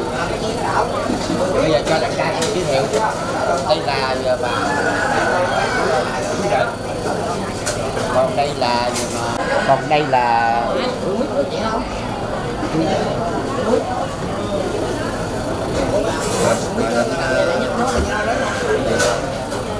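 A crowd of people chatter in the background.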